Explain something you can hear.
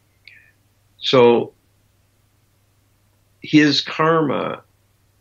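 An elderly man speaks calmly over an online call, in short phrases with pauses.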